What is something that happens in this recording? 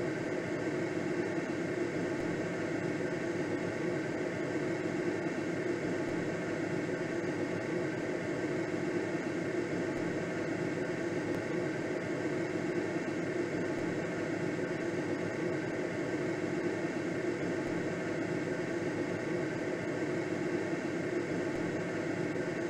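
Wind rushes steadily past a gliding aircraft.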